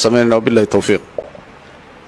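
A man chants into a microphone with a melodic voice.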